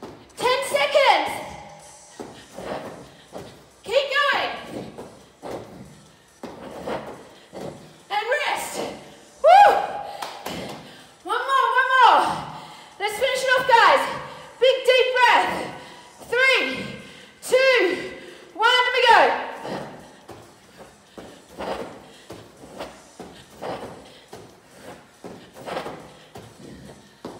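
Feet thud softly on a foam mat.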